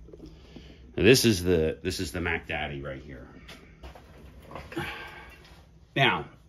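A man talks calmly close by.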